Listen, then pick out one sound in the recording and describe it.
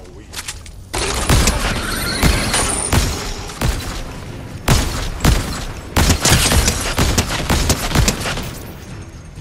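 Gunshots ring out loudly, one after another.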